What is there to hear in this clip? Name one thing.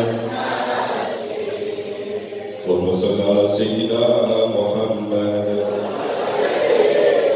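A man speaks with animation into a microphone over loudspeakers in an echoing hall.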